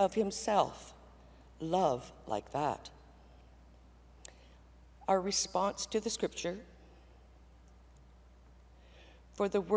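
An elderly woman speaks calmly into a microphone, with pauses between phrases.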